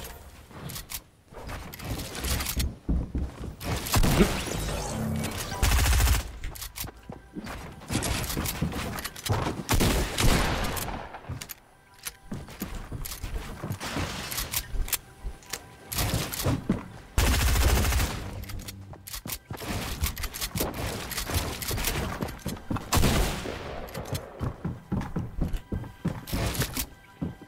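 Wooden building pieces clatter and thud into place in quick bursts.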